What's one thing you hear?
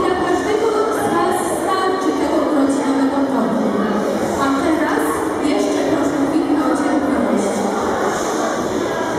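A choir of young children sings together in an echoing hall.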